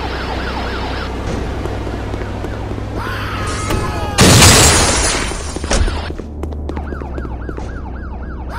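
A siren wails in a rising and falling pattern.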